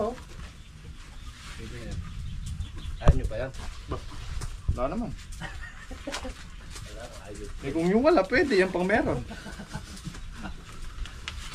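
Bundles of plants rustle as they are handled.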